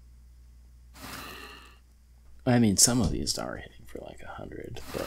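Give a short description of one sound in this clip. An icy magic blast whooshes and crackles.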